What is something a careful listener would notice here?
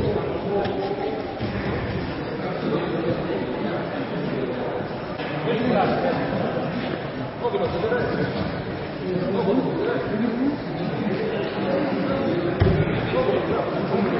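Bodies shuffle and thump on padded mats.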